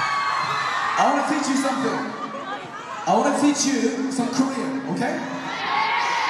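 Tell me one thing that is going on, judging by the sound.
A young man sings loudly into a microphone over a loudspeaker.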